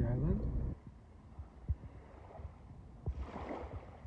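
Gentle water laps quietly.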